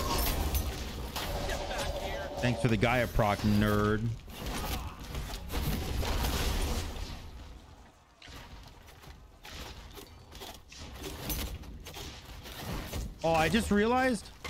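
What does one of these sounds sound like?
Magical fire attacks whoosh and crackle in a video game battle.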